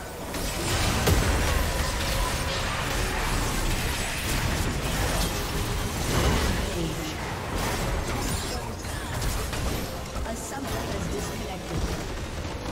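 Spell blasts and impacts crackle and boom in a video game battle.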